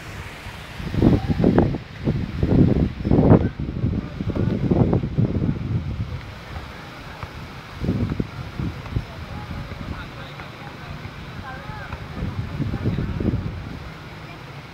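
Wind rumbles and buffets in gusts outdoors.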